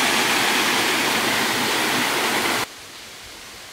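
A waterfall rushes loudly nearby.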